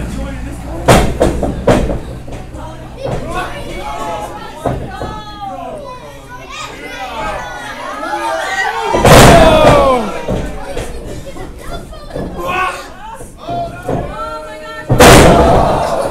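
Wrestlers slam onto a ring mat with loud thuds.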